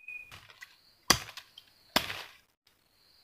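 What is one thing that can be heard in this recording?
A machete chops sharply into bamboo.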